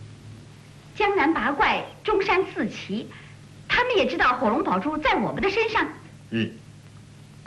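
A young woman speaks urgently, close by.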